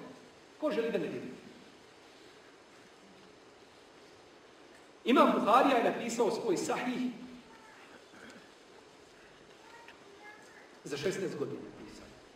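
A middle-aged man speaks with emphasis into a microphone, in short bursts with pauses.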